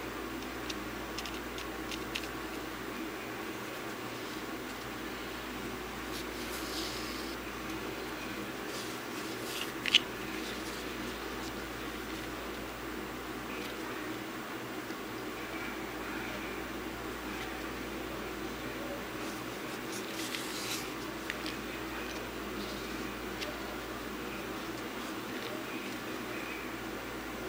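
Thread and fabric rustle softly as hands stitch.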